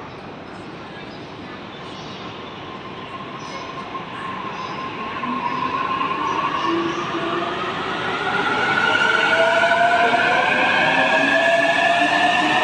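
An electric train pulls out, its motor whining higher as it speeds up.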